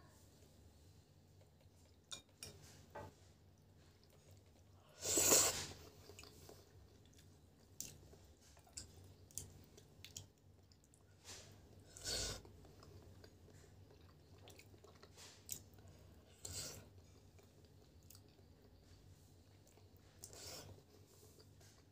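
A woman slurps noodles loudly up close.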